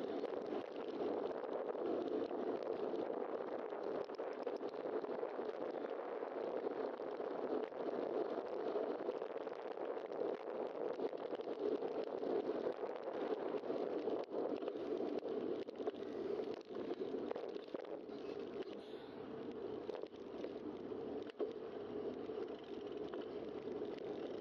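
A bicycle's tyres roll along a rough street.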